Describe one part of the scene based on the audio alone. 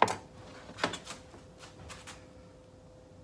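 A pot clanks onto a stovetop.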